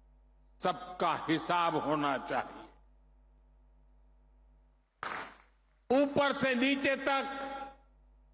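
An elderly man gives a speech through a loudspeaker system, speaking firmly in short phrases.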